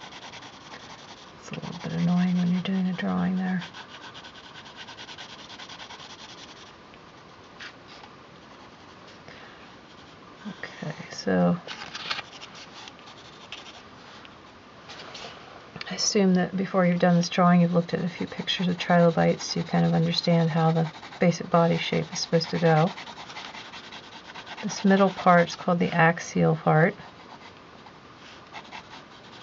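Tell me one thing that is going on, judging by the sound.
A pencil scratches softly across paper.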